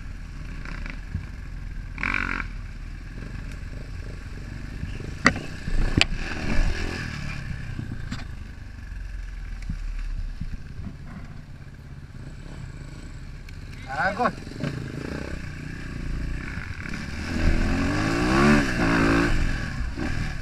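A dirt bike engine revs and rumbles close by.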